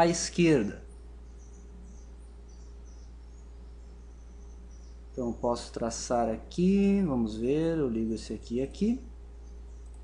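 A young man speaks calmly and close to a microphone, in short bursts.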